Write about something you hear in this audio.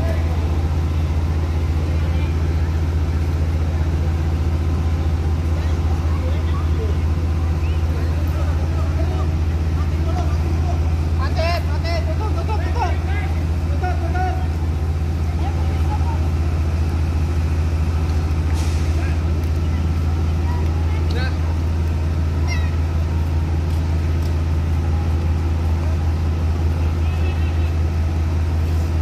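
A fire engine's motor drones steadily in the distance.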